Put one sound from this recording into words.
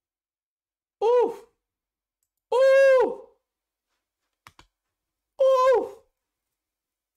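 A young man lets out loud, drawn-out cries close to a microphone.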